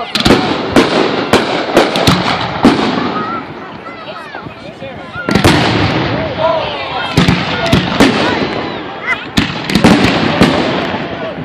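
Aerial firework shells burst with sharp booming bangs outdoors.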